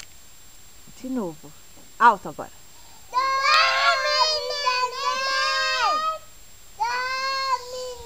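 A small boy talks and squeals excitedly close by.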